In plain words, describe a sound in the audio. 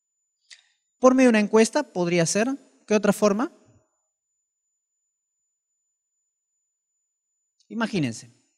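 A man speaks into a microphone in short, calm phrases with long pauses.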